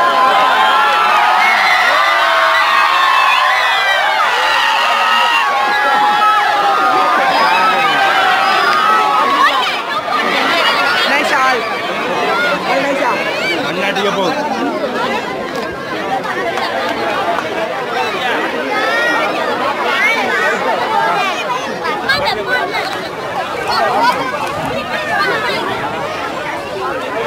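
A large crowd of men shouts and chatters loudly close by.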